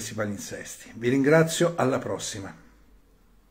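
A middle-aged man speaks calmly and close to the microphone.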